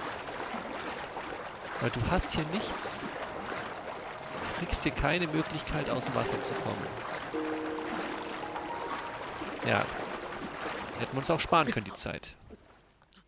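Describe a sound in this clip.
Water splashes and churns as a swimmer paddles through it.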